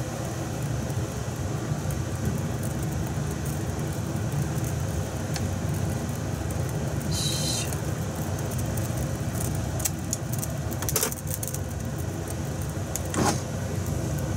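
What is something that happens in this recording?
Chopsticks tap against a pan.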